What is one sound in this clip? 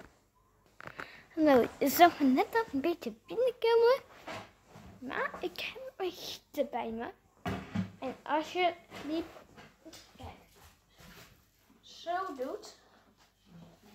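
A young boy talks with animation close by.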